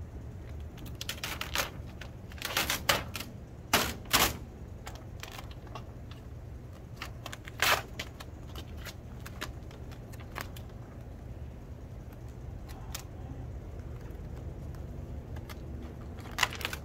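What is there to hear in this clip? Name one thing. A vinyl sheet crinkles and rustles as it is peeled off a van door.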